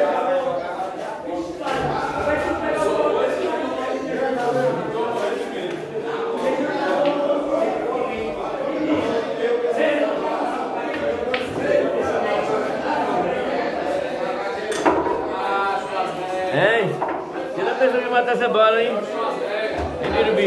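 Several men talk and call out nearby.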